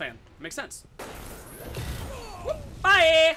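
Gunfire crackles from a video game.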